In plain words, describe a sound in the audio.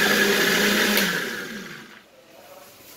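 A blender whirs loudly, then winds down.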